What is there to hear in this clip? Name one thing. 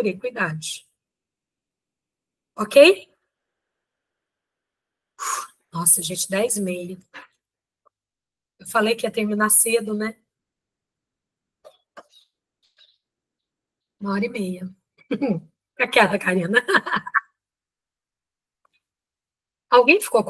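A woman speaks with animation through an online call microphone, in short bursts.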